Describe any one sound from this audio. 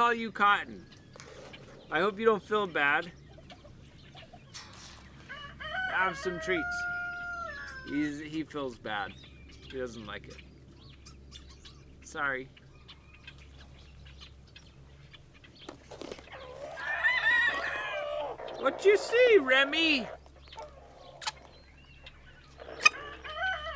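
Chickens cluck now and then nearby.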